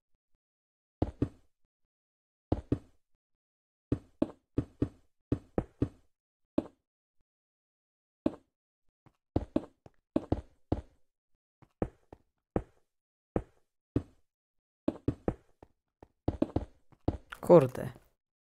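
Stone blocks are placed one after another with short dull thuds.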